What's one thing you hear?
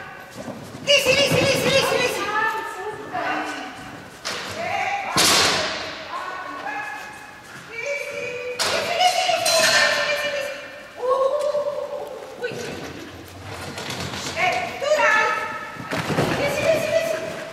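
A woman shouts short commands loudly in a large echoing hall.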